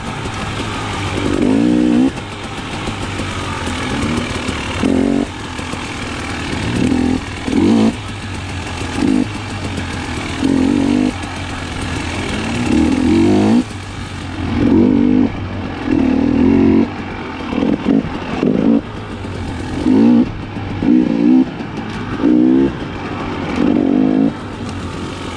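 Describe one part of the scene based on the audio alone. A dirt bike engine drones steadily close by and revs up again and again.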